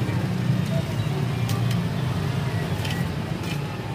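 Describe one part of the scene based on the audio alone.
A metal scoop clinks against a mug.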